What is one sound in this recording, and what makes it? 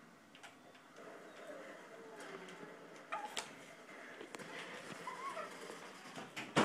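A baby babbles and squeals nearby.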